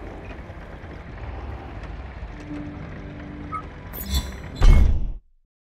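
A speedboat engine hums low as the boat drifts on water.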